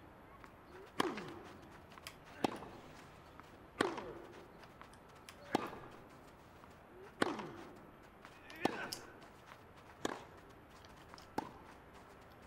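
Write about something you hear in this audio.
A tennis ball is struck back and forth with sharp racket pops.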